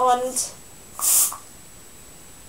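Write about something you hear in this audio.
A young woman blows a short puff of air close by.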